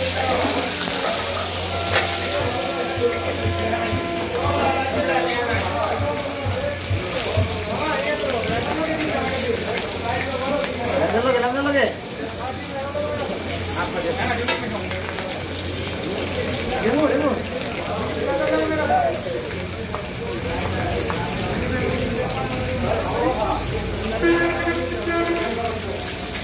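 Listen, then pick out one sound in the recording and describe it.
Food sizzles in hot oil on a griddle.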